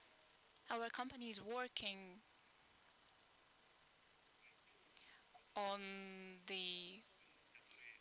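A man speaks into a microphone in short bursts with long pauses.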